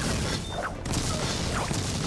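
A flamethrower roars in a long burst.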